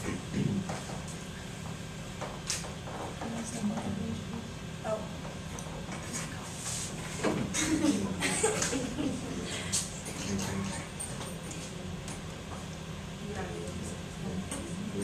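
A young girl talks quietly nearby.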